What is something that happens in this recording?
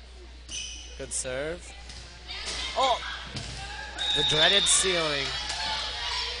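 Young girls shout and cheer in an echoing gym.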